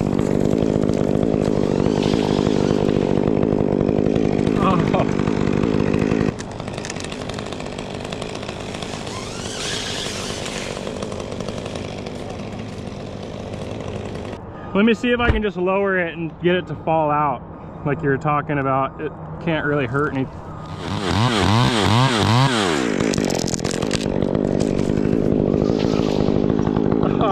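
A chainsaw engine runs close by, revving up and down.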